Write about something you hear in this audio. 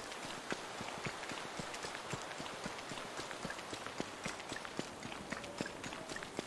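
Footsteps patter quickly over dry grass.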